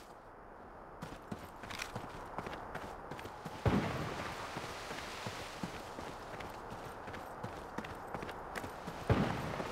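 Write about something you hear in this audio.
Footsteps run steadily through grass.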